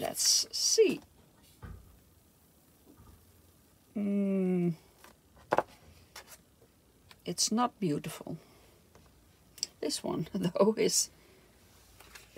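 A sheet of paper crackles softly as it is peeled away and handled.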